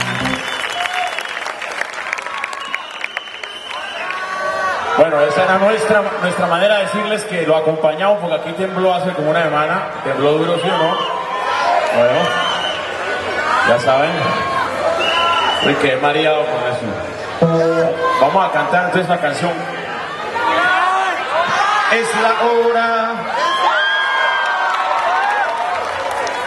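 A rock band plays loudly on stage.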